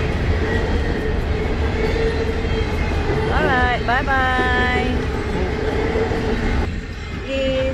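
A freight train rumbles steadily past nearby.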